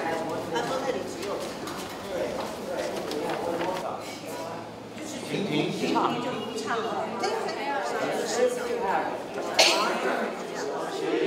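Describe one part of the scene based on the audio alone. Elderly women sing softly.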